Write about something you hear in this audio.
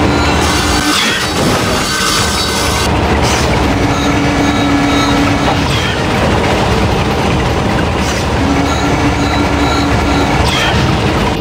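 A hovering craft hums with a steady engine whir.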